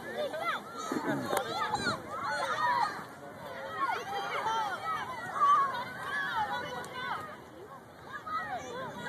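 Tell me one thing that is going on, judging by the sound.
Many young children shout and squeal excitedly outdoors.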